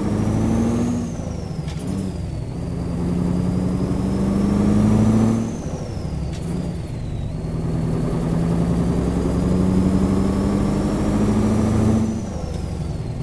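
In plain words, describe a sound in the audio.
A truck's engine drops in pitch at each gear change.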